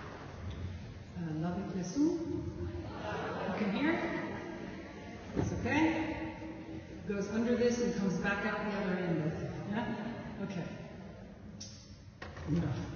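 A woman speaks warmly into a microphone through loudspeakers.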